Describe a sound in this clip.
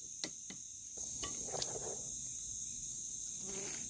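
A man bites into food and chews.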